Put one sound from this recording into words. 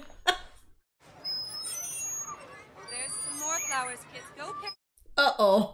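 Children chatter and shout nearby.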